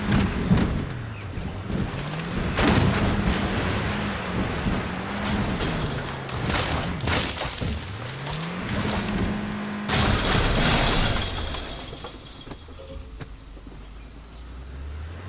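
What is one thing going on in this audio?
A car engine revs up and down as it drives hard.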